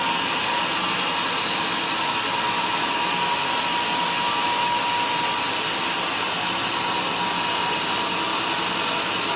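A band saw cuts steadily through a large log with a loud, high whine.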